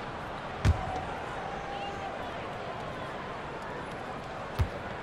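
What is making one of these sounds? A basketball bounces on a hard court with a thud.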